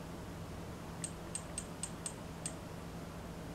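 Buttons on a small handheld device click sharply several times.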